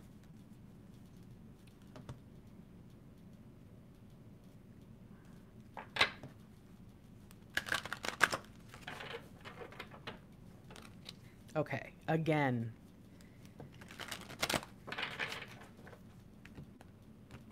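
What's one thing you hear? Playing cards shuffle softly between hands.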